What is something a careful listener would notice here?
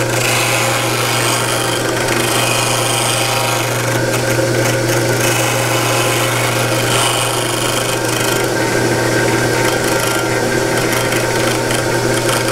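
Wood rasps against a spinning sanding disc.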